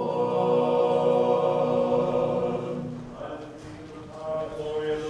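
A man chants in a slow, steady voice in a large echoing hall.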